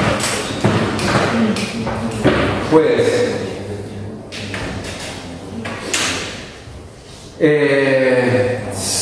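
A man lectures calmly, heard through a microphone.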